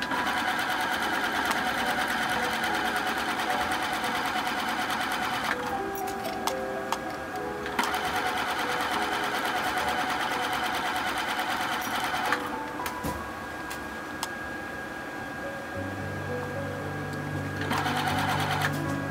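A sewing machine runs in fast, steady bursts of stitching, stopping and starting again.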